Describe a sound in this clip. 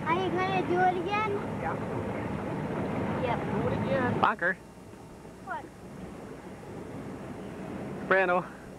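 A boat's engine rumbles steadily.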